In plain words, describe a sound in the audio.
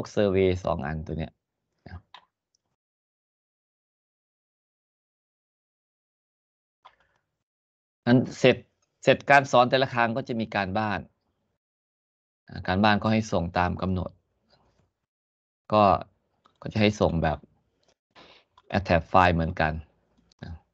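An elderly man speaks calmly over an online call, in short bursts with pauses.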